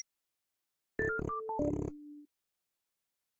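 A game's chime sounds as a round ends.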